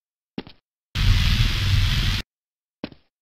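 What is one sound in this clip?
An electronic energy beam hums and crackles loudly.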